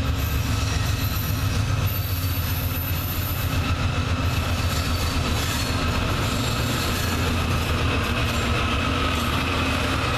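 Diesel freight locomotives approach and pass with a deep engine rumble.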